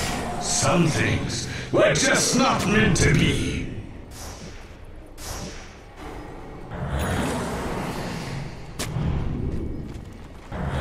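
Magic spells crackle and whoosh as fantasy fighters clash.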